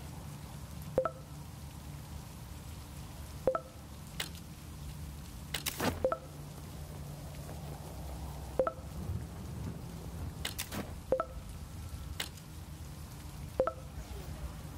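Short electronic blips sound as a game menu selection moves along.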